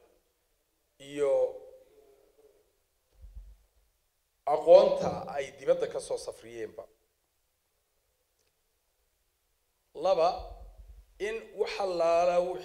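A middle-aged man speaks into a microphone in bursts, with long pauses.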